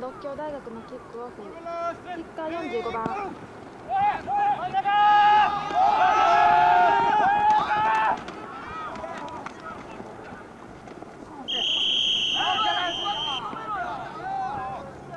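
A crowd of young spectators shouts and cheers outdoors.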